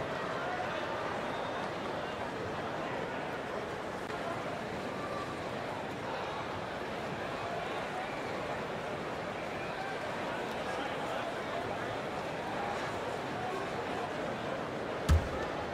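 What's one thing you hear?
A large indoor crowd murmurs steadily.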